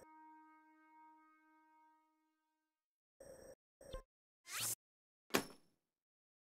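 Menu clicks blip softly.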